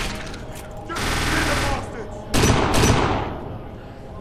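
Gunfire rings out in loud bursts.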